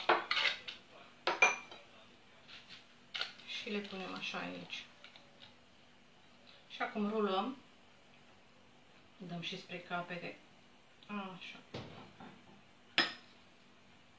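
Dishes clatter softly.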